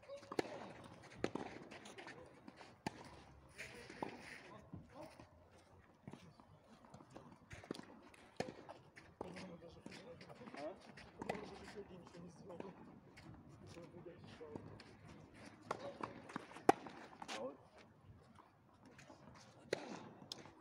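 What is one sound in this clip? Tennis balls are struck with rackets outdoors.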